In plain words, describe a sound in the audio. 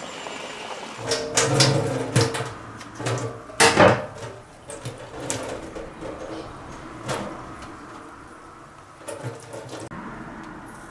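Tap water runs and splashes into a metal sink.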